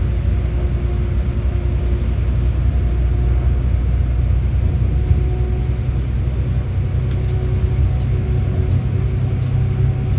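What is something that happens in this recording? Tyres roar on the road, echoing in a tunnel.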